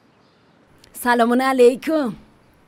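A middle-aged woman speaks with animation close by.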